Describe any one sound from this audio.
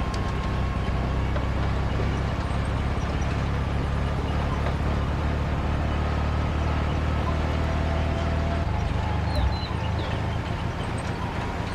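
An old truck engine drones as it drives along a road.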